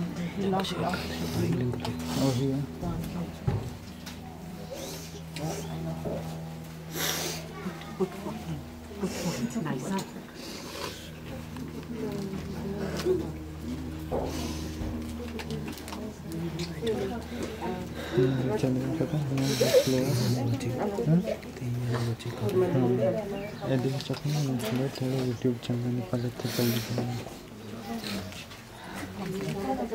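Women murmur quietly nearby.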